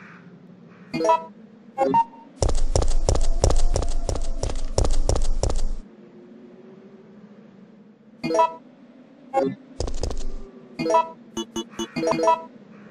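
Short menu beeps chirp several times.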